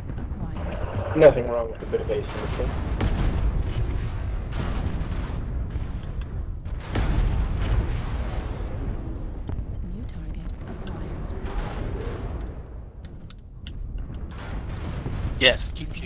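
Weapons fire in rapid bursts.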